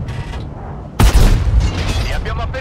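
A tank cannon fires with a loud, sharp blast.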